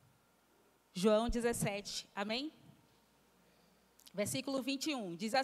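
A young woman speaks into a microphone, heard through loudspeakers, in short calm phrases.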